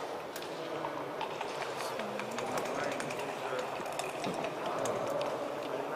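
Game checkers click onto a wooden board.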